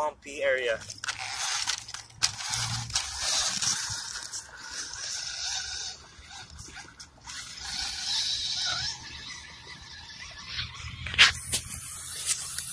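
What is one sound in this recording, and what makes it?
A toy car's electric motor whines as it drives.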